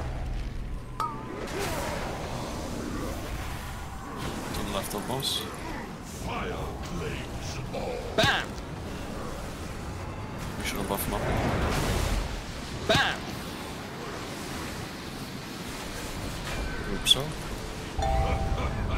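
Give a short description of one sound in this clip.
Fantasy spell effects whoosh and crackle in a game battle.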